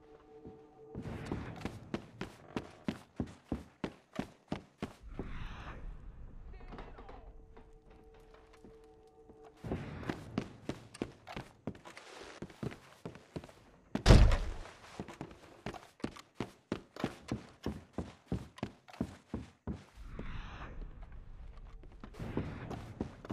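Footsteps thud on wooden floors at a steady walking pace, echoing indoors.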